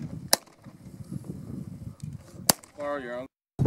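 Gunshots crack sharply outdoors, one at a time.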